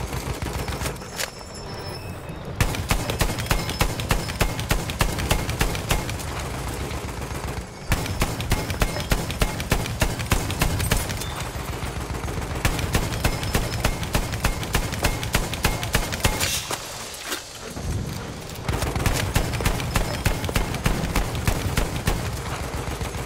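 A heavy machine gun fires long rapid bursts close by.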